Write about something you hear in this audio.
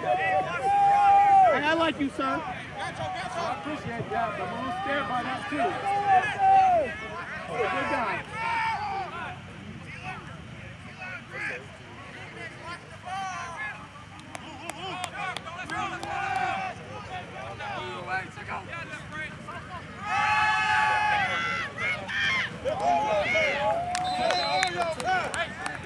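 Young players call out to each other across an open field.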